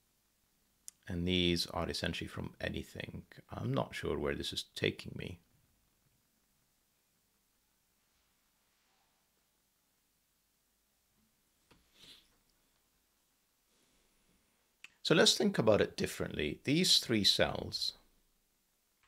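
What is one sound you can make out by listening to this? A man speaks calmly and thoughtfully into a close microphone.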